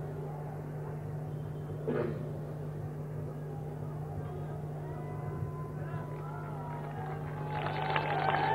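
A man reads out slowly through a loudspeaker outdoors.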